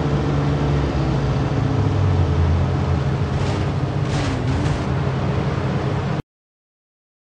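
A car engine drones steadily at speed.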